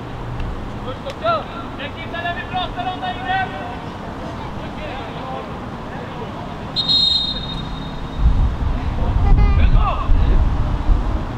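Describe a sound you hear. Young men shout to one another across a playing field in the distance.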